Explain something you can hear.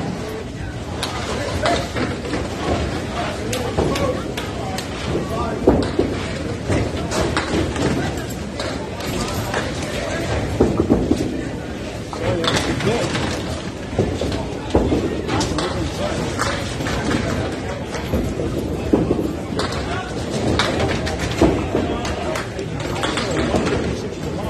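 Pins crash and clatter in a large echoing hall.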